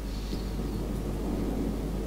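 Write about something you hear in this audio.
Shells splash into the sea.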